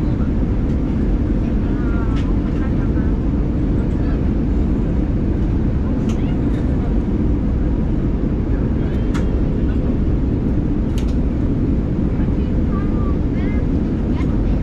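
A jet engine roars steadily, heard from inside the cabin.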